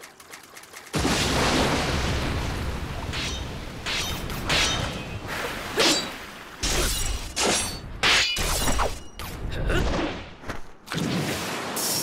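Heavy blows land with loud thuds and whooshes.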